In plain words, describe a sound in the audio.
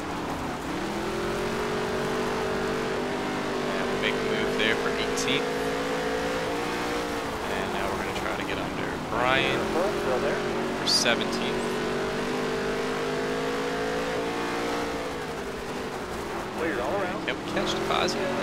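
Tyres skid and scrape on loose dirt.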